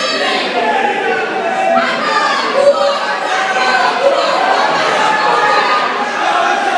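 A crowd of men and women chants and shouts loudly in a large echoing hall.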